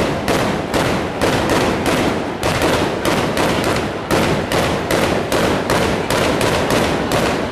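Loud fireworks bang in rapid, uneven succession close by.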